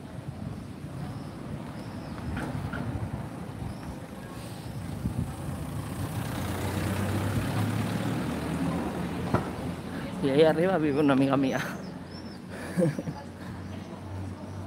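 Wind rumbles against the microphone while riding along a street.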